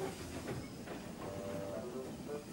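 Water gushes and splashes from a breached dam.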